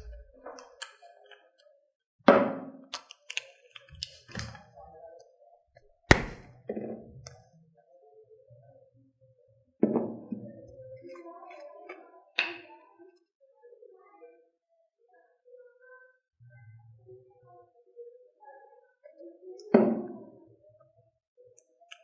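A woman speaks quietly and close by.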